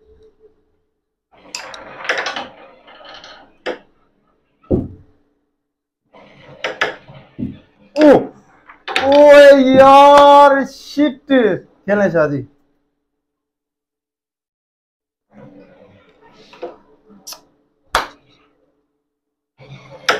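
Carrom pieces click sharply against each other on a wooden board.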